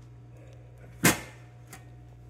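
A hand knocks on a metal panel.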